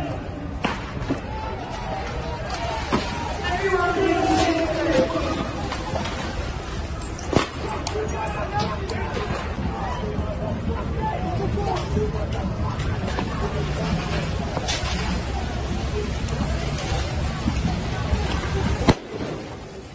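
A water cannon jet hisses and roars steadily.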